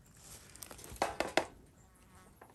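A spatula scrapes and knocks against a pan.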